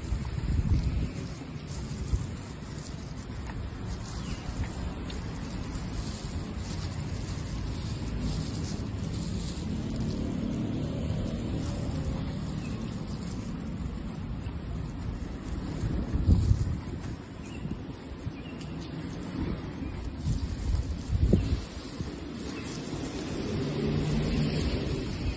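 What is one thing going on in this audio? Plastic rustles and crinkles close by.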